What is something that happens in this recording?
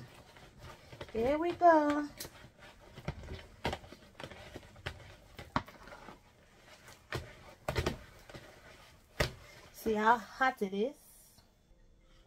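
A wooden spoon knocks and scrapes in a plastic bowl of dough.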